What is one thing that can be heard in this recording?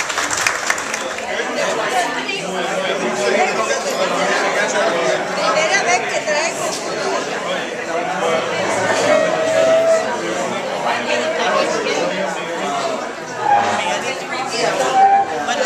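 An elderly woman talks and laughs close by.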